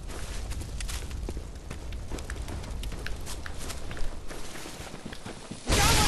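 Footsteps crunch quickly over gravel and leaves.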